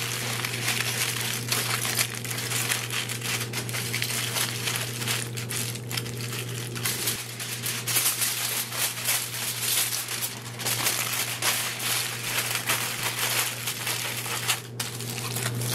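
Aluminium foil crinkles and rustles as hands fold it.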